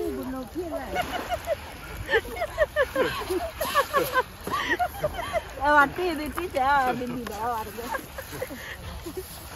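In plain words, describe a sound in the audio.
Several adults talk with animation close by.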